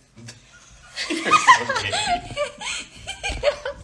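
A young man and a young woman laugh loudly together.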